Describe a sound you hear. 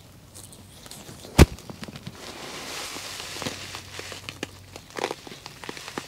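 Loose dirt patters onto a plastic sheet.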